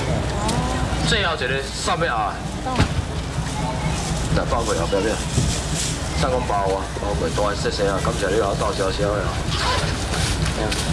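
A man calls out loudly and rapidly.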